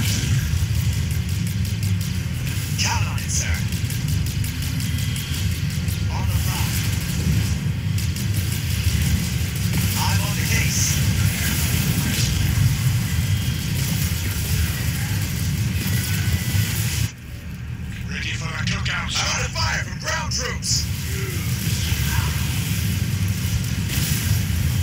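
Gunfire and explosions rumble steadily in a battle.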